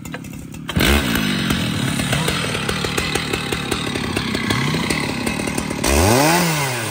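A chainsaw engine starts with a pull and idles with a rattling putter.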